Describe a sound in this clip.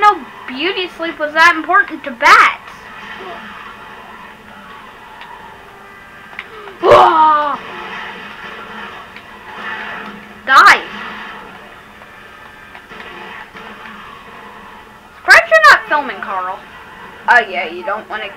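A video game's music and effects play through a television speaker.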